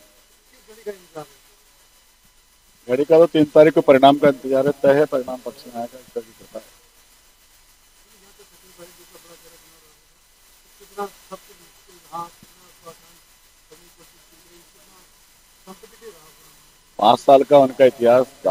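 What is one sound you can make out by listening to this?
A man speaks with animation into microphones close by.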